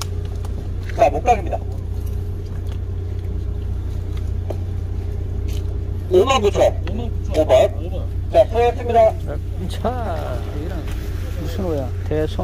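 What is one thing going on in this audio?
Men talk nearby in a crowd.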